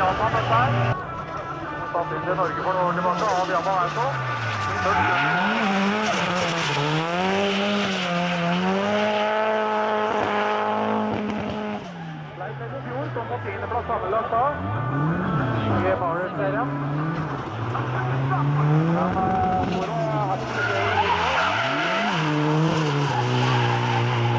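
A car engine revs hard, rising and falling again and again.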